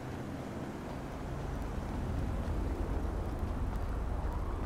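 A car engine rumbles closer.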